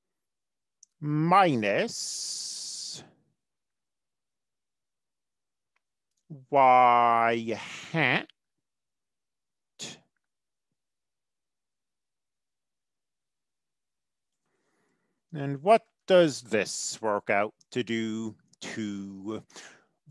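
A man speaks calmly and explains, heard through a microphone.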